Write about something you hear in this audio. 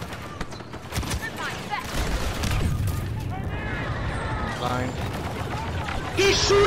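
Laser blasters fire in rapid, zapping bursts.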